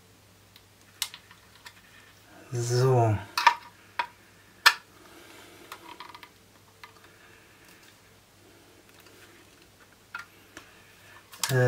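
A screwdriver turns screws with small metallic clicks.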